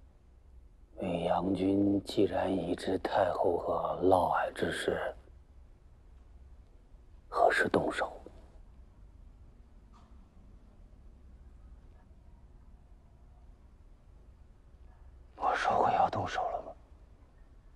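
A middle-aged man speaks gravely and quietly, close by.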